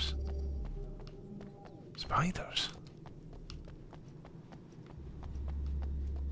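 Footsteps run on hard ground.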